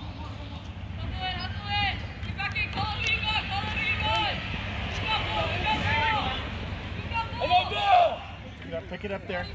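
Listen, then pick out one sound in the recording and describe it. Young men shout to each other from across an open field.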